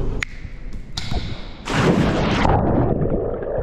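Water splashes loudly as a man plunges into a pool.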